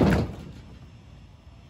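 A heavy piece of wood thuds down onto a metal trailer.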